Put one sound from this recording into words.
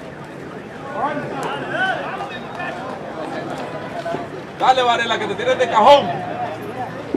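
Spectators shout loudly at times.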